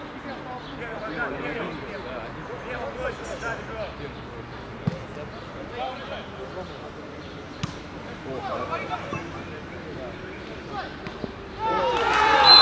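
Young men shout to each other across an outdoor field.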